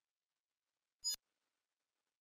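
A short electronic chime sounds as a game text box opens.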